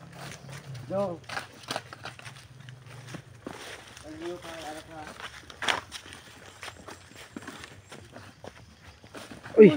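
Footsteps crunch through undergrowth on a dirt trail.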